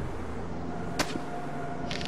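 A bowstring twangs sharply once.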